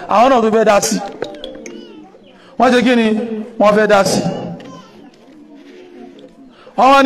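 A young man chants in bursts through a microphone, with pauses between phrases.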